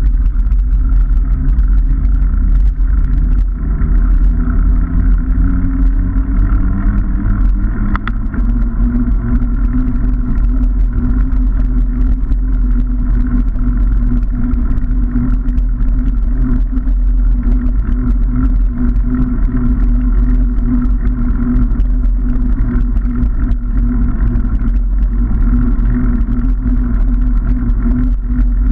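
Bicycle tyres roll and rumble over a rough path.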